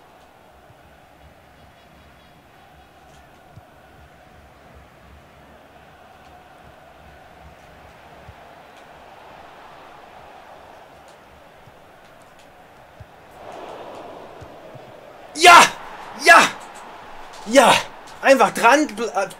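A large stadium crowd murmurs and hums steadily.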